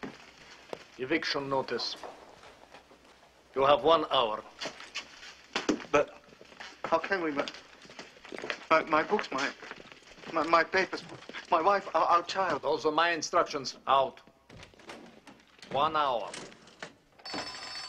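A man speaks sternly and loudly nearby.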